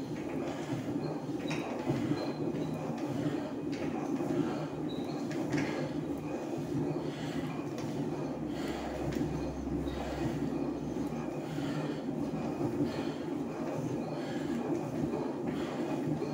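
An exercise machine whirs and rattles steadily as someone pedals.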